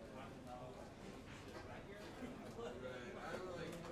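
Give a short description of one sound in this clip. A saxophone plays.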